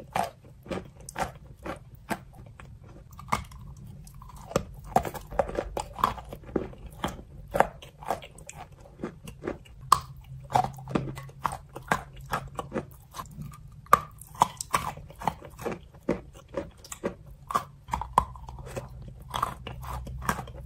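A young woman chews and smacks her lips wetly close to a microphone.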